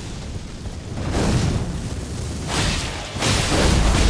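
A large beast crashes down with loud rushing thuds.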